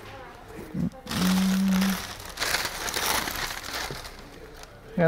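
Tissue paper rustles as a man unwraps a box.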